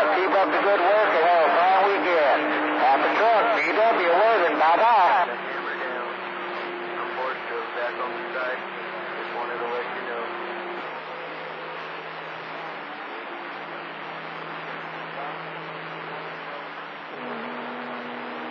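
A radio receiver hisses with crackling static.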